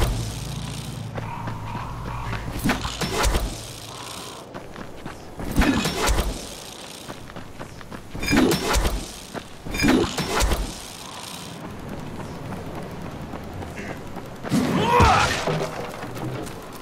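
Footsteps run and rustle through tall grass.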